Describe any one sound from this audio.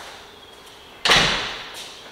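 A door shuts with a bang.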